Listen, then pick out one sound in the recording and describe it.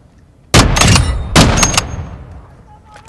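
A rifle fires a loud, booming shot.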